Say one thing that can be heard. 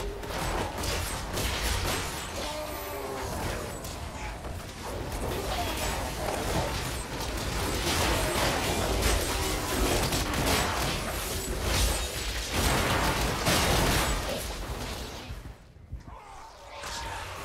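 Magic spells crackle and blast in rapid bursts amid a game's combat.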